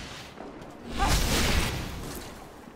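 A magic blast whooshes and crackles.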